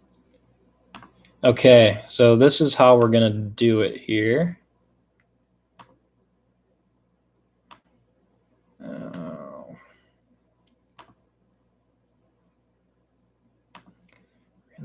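A laptop key or touchpad clicks now and then.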